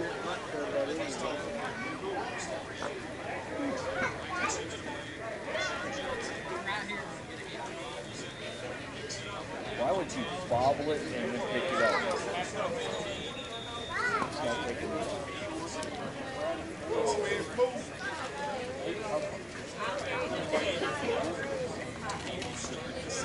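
Several men talk and call out across an open field outdoors.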